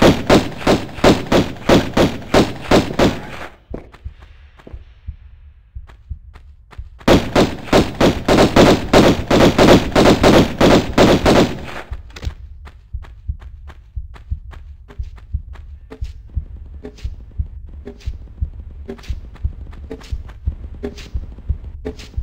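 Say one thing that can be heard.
Quick footsteps slap on hard stone.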